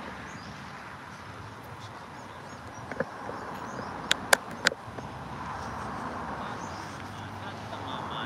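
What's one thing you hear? A car drives past on a paved road.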